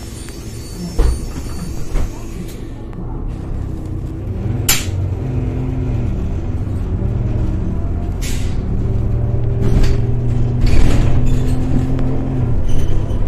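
A bus rattles and clunks over the road.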